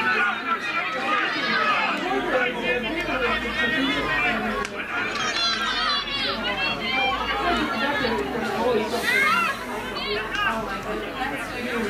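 Young girls shout and call to each other outdoors across an open field.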